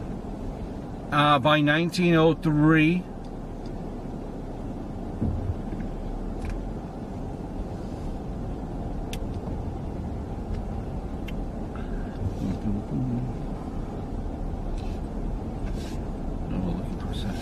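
A moving car rumbles low and steadily, heard from inside.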